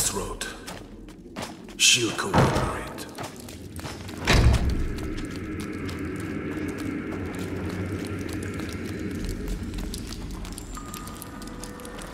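Light footsteps hurry across a stone floor.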